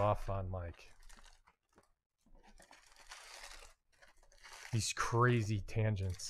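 A cardboard box flap is pulled open.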